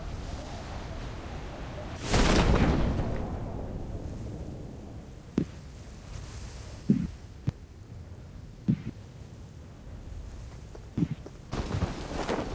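Wind rushes steadily past a parachute in flight.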